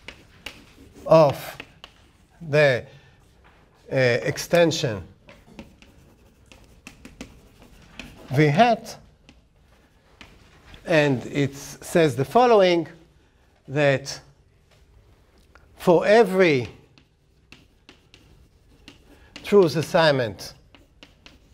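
A middle-aged man speaks slowly in short bursts, close by.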